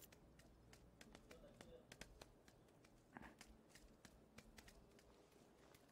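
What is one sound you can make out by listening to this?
Footsteps patter quickly on a hard rooftop.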